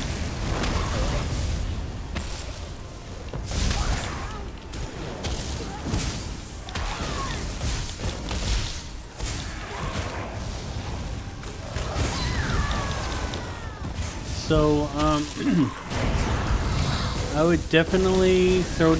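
Lightning spells crackle and boom in a game battle.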